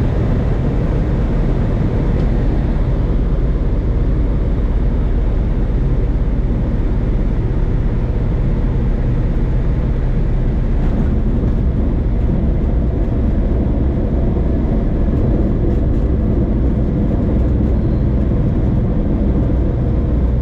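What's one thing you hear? A small propeller plane's engine drones loudly and steadily up close.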